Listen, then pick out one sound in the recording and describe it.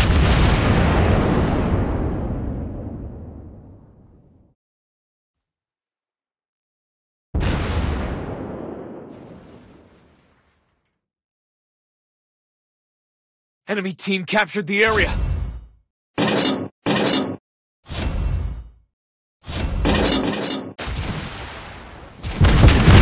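Heavy guns fire with loud booming blasts that rumble away.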